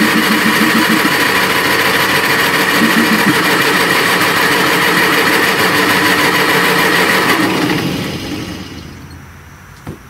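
A large diesel engine runs loudly, then winds down and stops.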